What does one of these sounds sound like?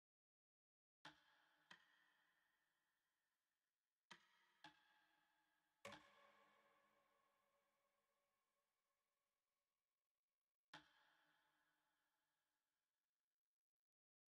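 Short bright menu chimes ring out one at a time and slowly fade.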